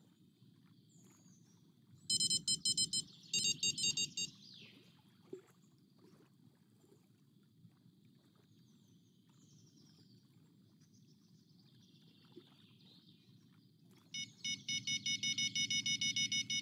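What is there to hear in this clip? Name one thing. Water laps gently against a shore.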